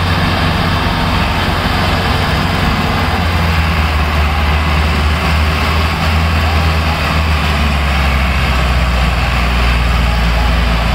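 Tractor diesel engines roar and labour loudly under heavy strain.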